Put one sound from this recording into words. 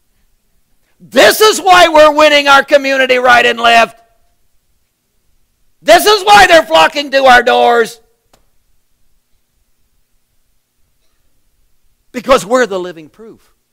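A middle-aged man speaks with animation, with long pauses between phrases.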